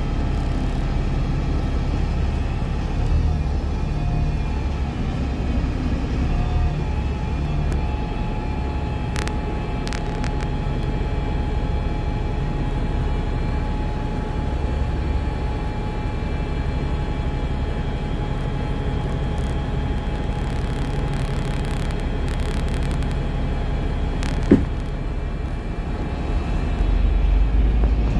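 Busy city traffic rumbles steadily close by.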